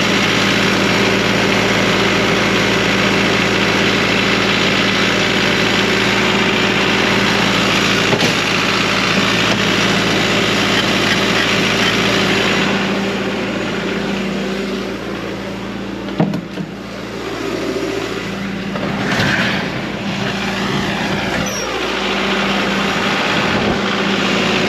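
An engine idles with a steady hum close by.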